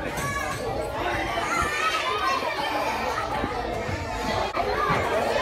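A toddler babbles and makes small vocal sounds close by.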